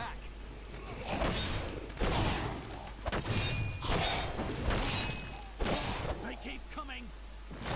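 Creatures screech during a fight.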